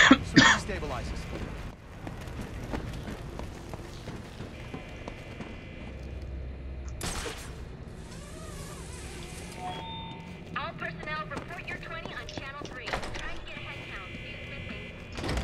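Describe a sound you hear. Heavy footsteps walk on a hard floor.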